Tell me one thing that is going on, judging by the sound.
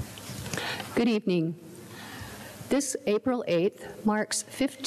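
A second elderly woman speaks into a microphone, reading out.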